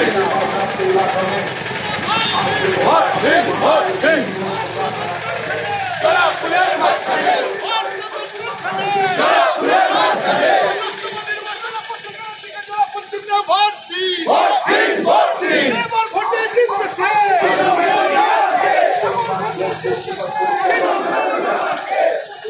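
A crowd of men and women chant slogans loudly outdoors.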